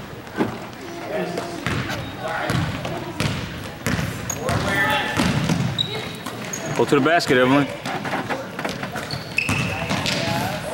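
Young women shout and call out to one another across an echoing gym.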